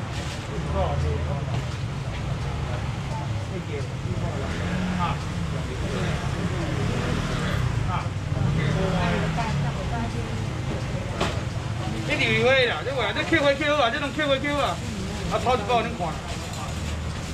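A busy market crowd murmurs all around.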